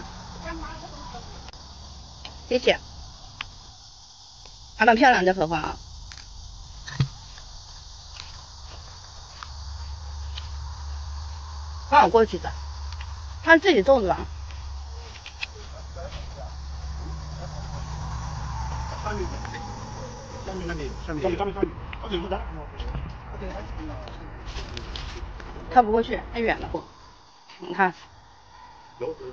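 A woman talks close by, casually.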